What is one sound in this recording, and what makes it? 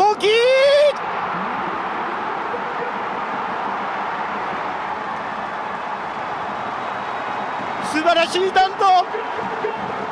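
A large crowd in a stadium cheers and roars loudly.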